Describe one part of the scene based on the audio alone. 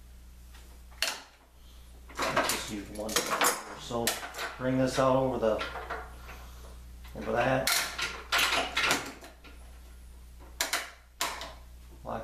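A metal clamp clicks against a workbench.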